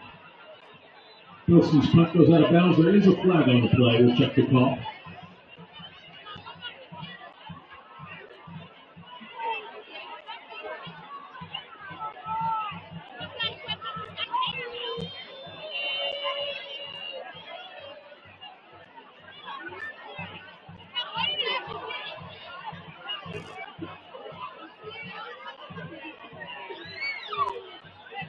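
A crowd murmurs and chatters outdoors in the background.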